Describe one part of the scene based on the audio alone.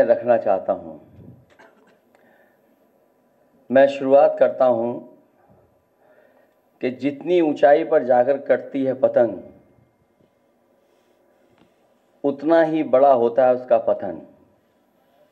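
A middle-aged man speaks calmly into a microphone in bursts, with pauses between phrases.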